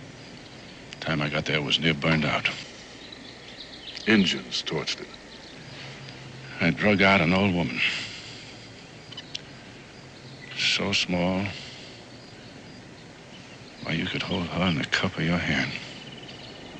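An older man answers in a low, grave tone, close by.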